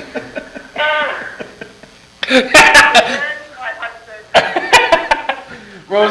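A second man laughs along nearby.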